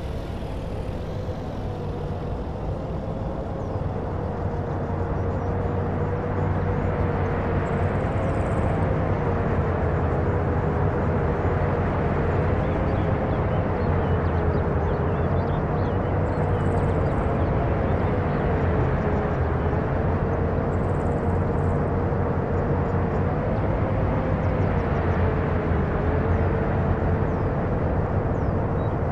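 A truck engine drones with a pitch that gently rises and falls.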